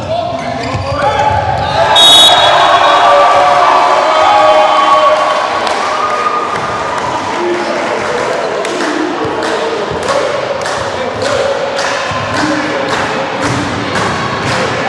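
A crowd in an echoing hall cheers and shouts.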